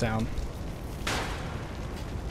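A grappling gun fires with a sharp bang.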